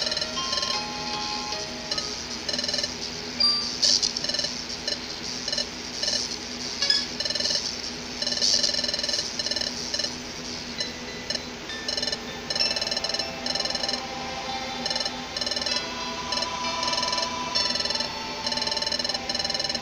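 Short electronic blips chatter rapidly in quick bursts.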